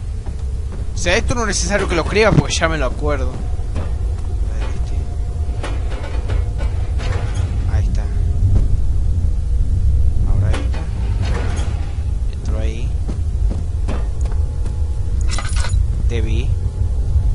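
A man talks briefly into a microphone, close by.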